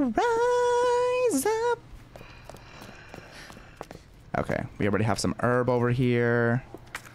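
A young man sings loud, drawn-out notes close to a microphone.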